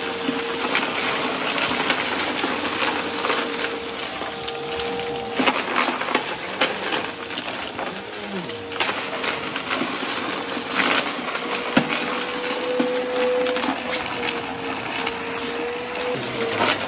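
A vacuum cleaner whirs steadily with a high motor whine.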